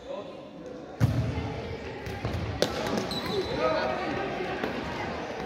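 A ball thuds on a hard floor.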